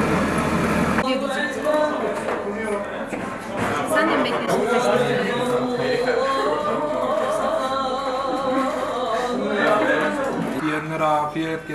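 A crowd of young men and women chat around a table.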